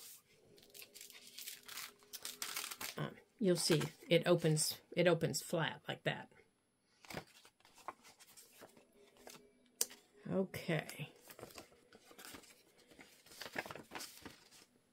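Paper rustles and crinkles as it is handled and folded.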